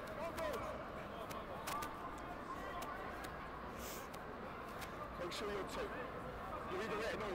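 Young men shout to each other across an open outdoor field.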